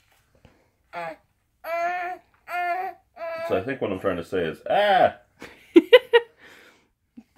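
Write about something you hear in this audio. A baby babbles and squeals.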